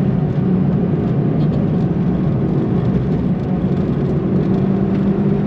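A car engine hums steadily from inside the cabin as the car drives along.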